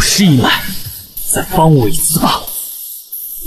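An older man speaks tensely up close.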